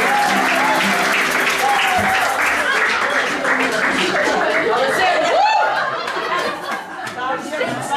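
A crowd of men and women chatter and talk loudly indoors.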